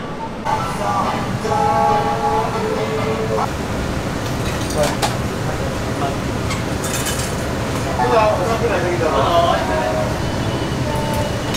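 Metal utensils clink and clatter against pots.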